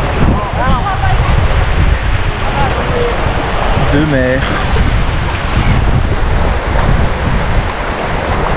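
Shallow water splashes around feet wading through it.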